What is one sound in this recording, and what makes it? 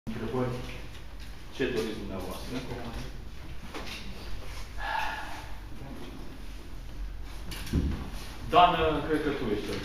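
A young man speaks calmly into microphones.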